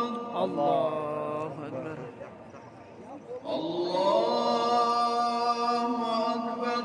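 A man chants a prayer loudly and close by, in long drawn-out tones.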